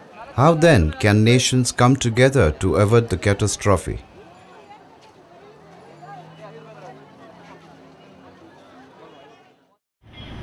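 A crowd murmurs and chatters in the background outdoors.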